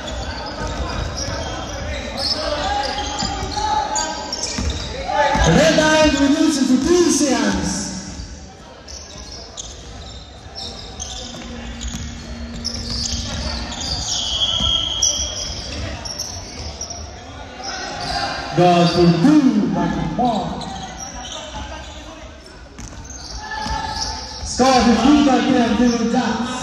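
A basketball thumps on a wooden floor in a large echoing hall.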